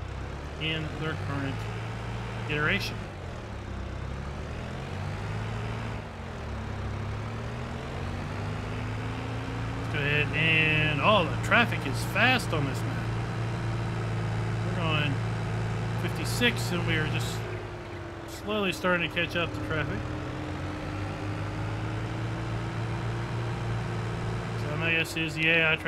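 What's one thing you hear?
A tractor engine hums steadily as it drives along a road.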